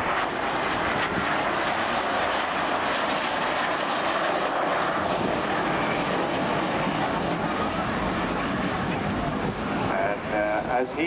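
A jet engine roars loudly overhead.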